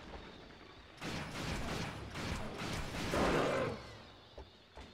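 A gun fires in a loud burst.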